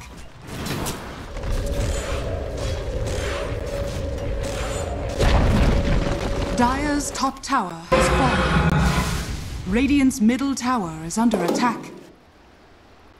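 Spell effects whoosh, crackle and thud in a fast fight.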